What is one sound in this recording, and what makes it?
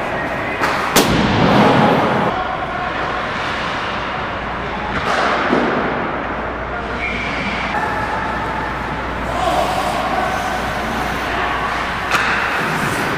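Hockey sticks and a puck clack sharply.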